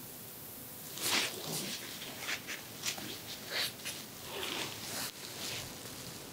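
A paper tissue rustles and crinkles close by.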